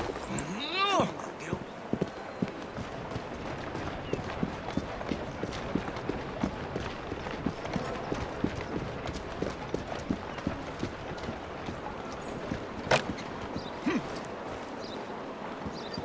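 Footsteps tread on cobblestones.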